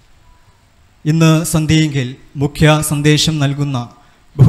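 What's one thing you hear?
A young man reads aloud through a microphone and loudspeakers in an echoing hall.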